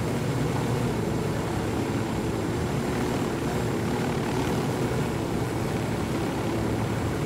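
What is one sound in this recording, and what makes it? A helicopter's rotor blades thump steadily as it flies close by.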